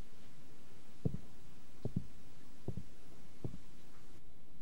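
Footsteps thud slowly across a hard floor.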